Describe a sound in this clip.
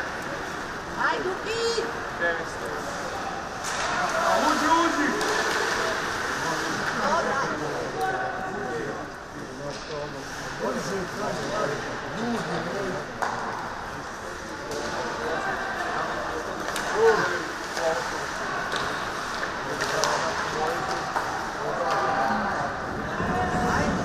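Players shout to one another in a large echoing rink.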